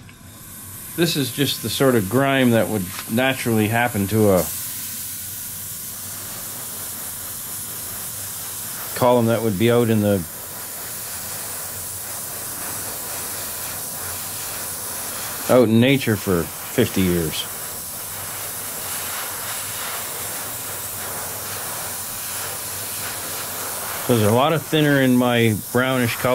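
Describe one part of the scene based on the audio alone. A middle-aged man speaks calmly, close by, in short bursts.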